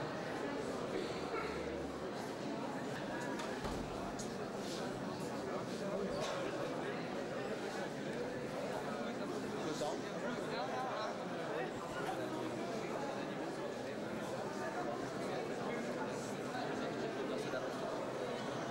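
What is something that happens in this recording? A crowd of men and women chatter steadily.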